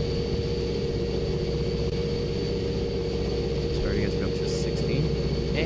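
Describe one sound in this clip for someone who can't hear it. A diesel locomotive engine rumbles steadily with a constant whine.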